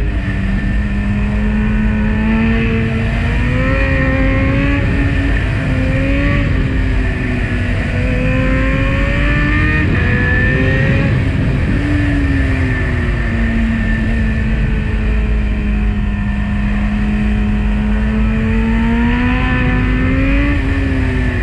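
Wind rumbles and buffets loudly past a rider.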